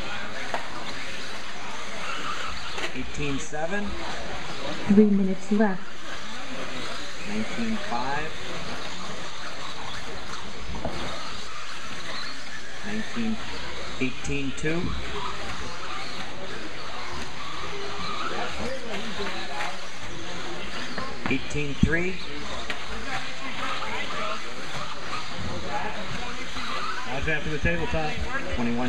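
Small electric racing cars whine as they speed around.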